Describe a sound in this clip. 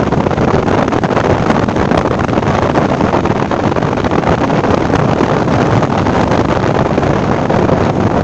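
Wind rushes loudly past the car.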